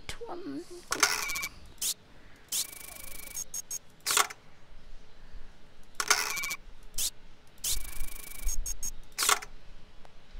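A stamp tray slides out and back with a mechanical rattle.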